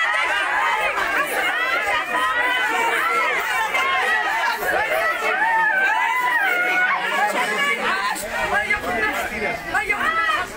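A crowd of women shout and chant loudly together outdoors.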